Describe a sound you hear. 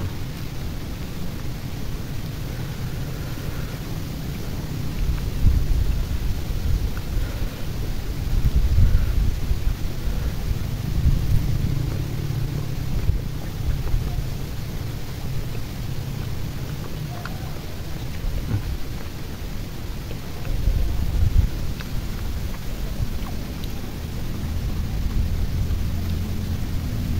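A young man chews food noisily close by.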